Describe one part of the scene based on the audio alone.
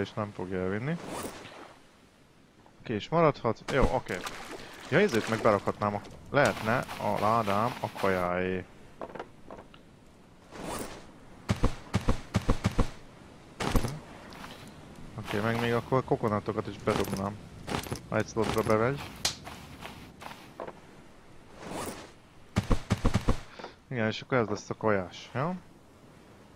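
A man talks animatedly into a close microphone.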